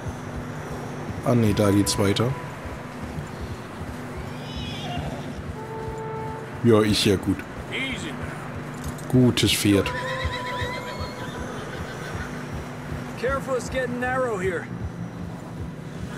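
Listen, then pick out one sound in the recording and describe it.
Horse hooves crunch steadily through deep snow.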